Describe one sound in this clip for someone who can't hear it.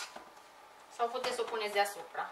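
A woman speaks nearby.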